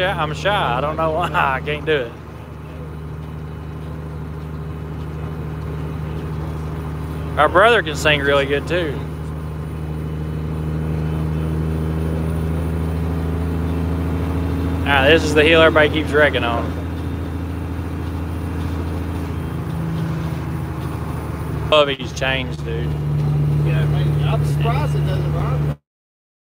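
A vehicle engine hums steadily from inside the cab.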